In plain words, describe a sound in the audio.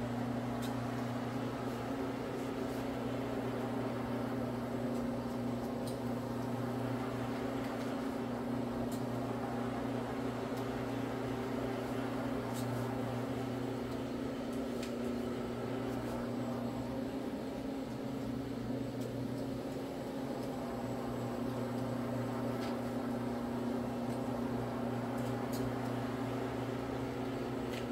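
A floor machine hums steadily as it scrubs a carpet.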